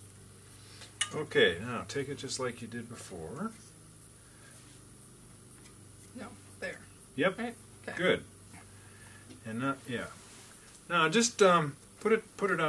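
An older man speaks calmly and close by.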